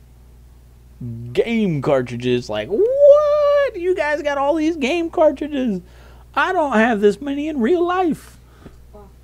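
A man speaks excitedly and loudly into a close microphone.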